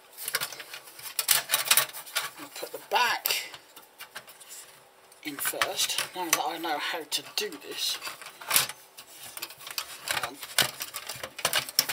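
A thin metal cover rattles and clanks as hands handle it.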